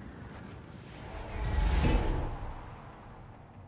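A whooshing magical rush swells and fades.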